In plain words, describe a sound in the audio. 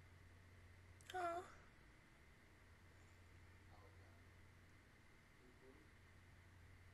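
A young woman speaks a few words softly, close to a microphone.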